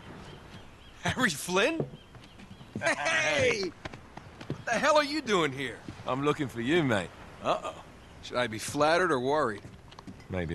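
A second young man answers calmly.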